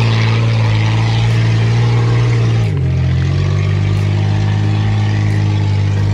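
Tyres churn through thick mud.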